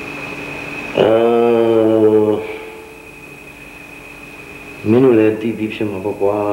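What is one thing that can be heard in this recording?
An older man speaks slowly and calmly.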